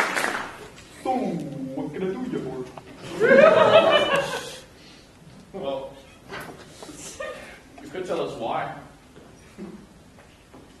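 A young man speaks with animation on a stage, in an echoing hall.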